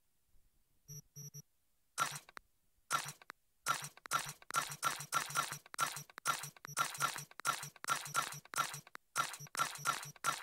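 Quick clicks tick rapidly and repeatedly.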